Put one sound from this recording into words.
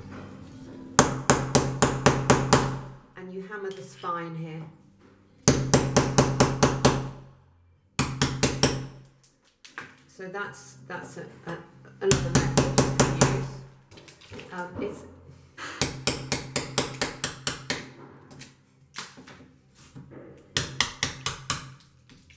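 A small hammer taps rapidly in quick bursts.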